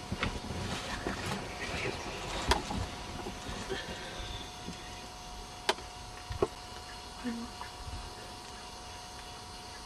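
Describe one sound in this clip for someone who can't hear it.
A rhinoceros tears and chews grass close by.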